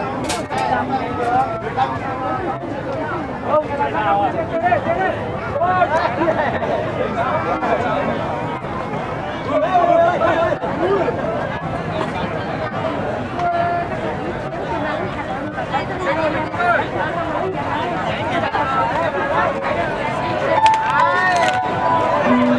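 A large outdoor crowd of men and women chatters all around.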